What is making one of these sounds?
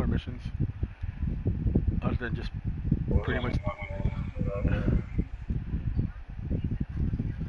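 A man talks casually into a nearby microphone.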